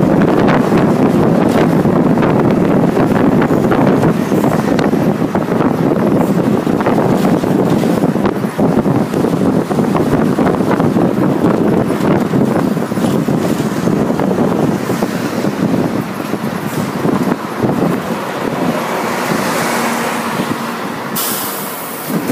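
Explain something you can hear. Traffic passes by on a busy street.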